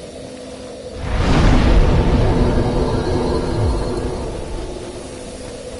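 A bonfire flares up with a loud whoosh.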